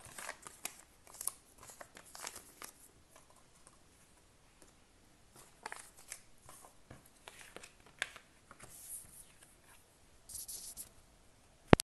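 Cards slide and tap on a wooden table.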